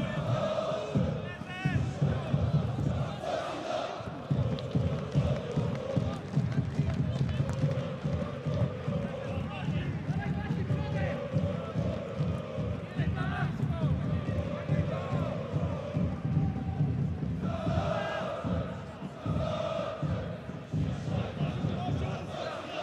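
A crowd chants and sings loudly in an open stadium.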